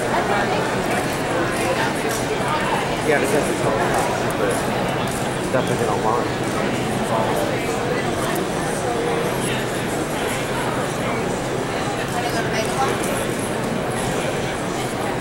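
A crowd chatters all around in a large, busy hall.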